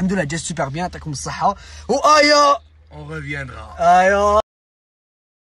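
A young man talks animatedly close by.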